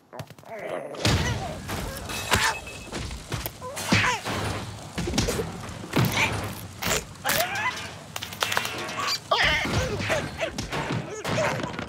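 Cartoon birds squawk and screech frantically.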